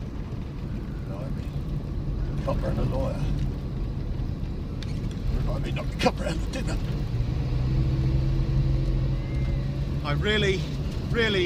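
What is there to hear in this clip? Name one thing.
A car engine hums steadily from inside the cab.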